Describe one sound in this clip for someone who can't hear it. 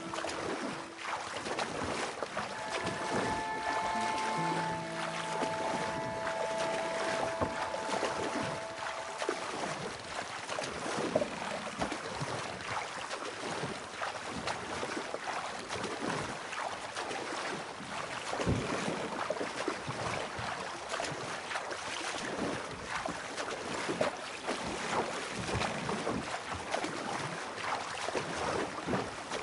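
Water laps against a small wooden boat.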